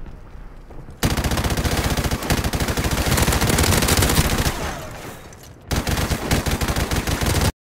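Rapid automatic gunfire rattles in bursts.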